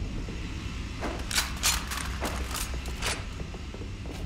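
Guns click and clatter as they are picked up and handled.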